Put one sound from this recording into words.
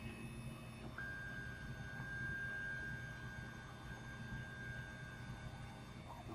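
A 3D printer's motors whine softly as the print bed and head move.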